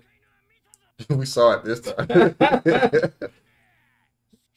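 Two men laugh together close by.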